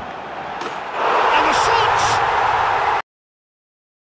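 A stadium crowd roars loudly.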